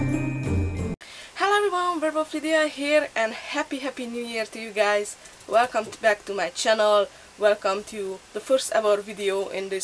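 A woman talks close to the microphone with animation.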